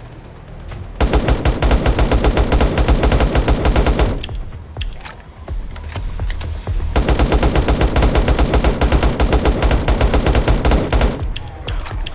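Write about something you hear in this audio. A rifle fires in long, rapid bursts.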